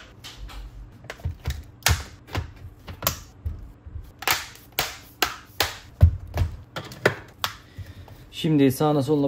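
Hard plastic clicks and taps as a laptop is handled.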